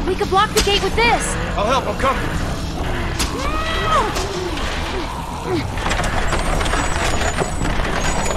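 Heavy wooden wheels creak and rumble as a cannon is pushed.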